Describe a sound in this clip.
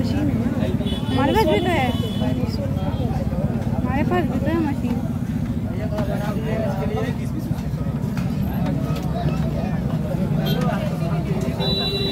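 A busy crowd murmurs and chatters outdoors.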